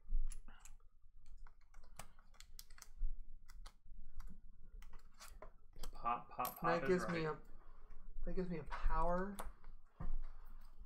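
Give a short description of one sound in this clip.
Game pieces and cards click and tap on a table.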